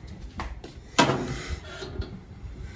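A metal mailbox door clanks open.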